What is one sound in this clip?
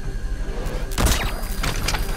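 A rifle fires a single muffled shot.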